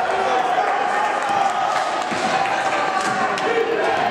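A basketball is dribbled on a hardwood floor.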